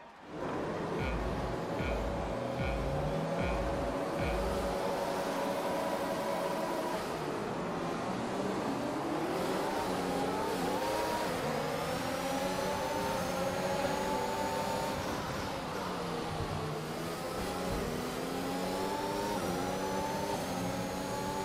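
A racing car engine idles, then revs hard and climbs through the gears, its whine rising and dropping at each shift.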